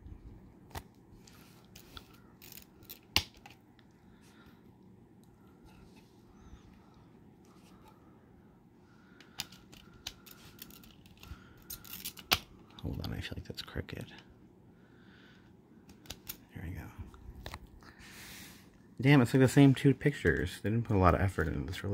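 A plastic disc case clicks and rattles as a disc is handled.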